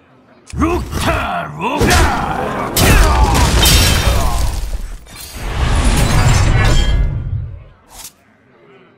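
Loud game sound effects crash and whoosh in bursts.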